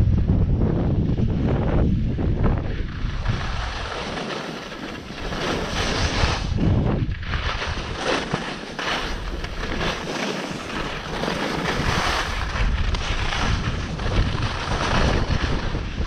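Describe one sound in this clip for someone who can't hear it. Wind rushes past the microphone at speed.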